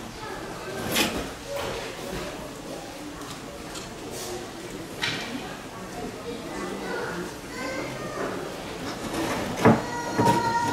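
Objects knock and clatter against glass.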